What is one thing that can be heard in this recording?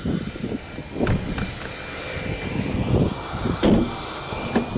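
A car door latch clicks.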